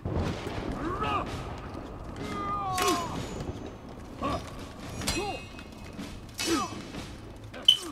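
Steel swords clash in combat.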